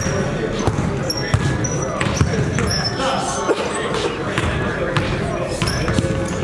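A basketball bounces on the floor in a large echoing gym.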